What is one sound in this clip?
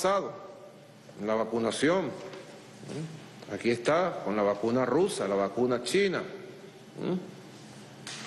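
A middle-aged man speaks calmly into a microphone, reading out.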